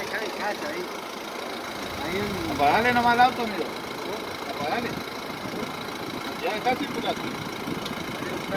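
A man talks loudly nearby.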